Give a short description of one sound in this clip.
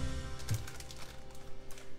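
Paper crinkles as it is folded.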